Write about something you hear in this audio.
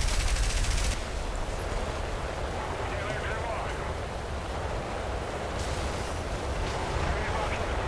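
An explosion bursts and fire roars.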